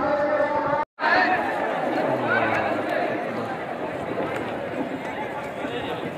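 A large crowd of men murmurs and talks outdoors.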